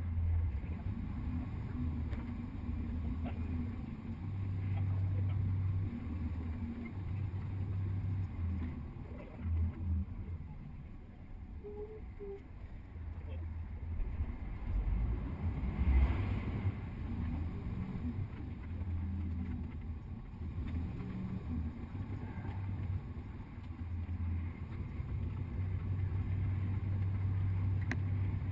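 Traffic passes by on a wide road.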